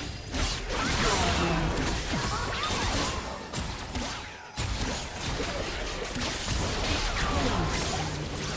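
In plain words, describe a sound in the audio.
Characters' attacks strike with sharp hits.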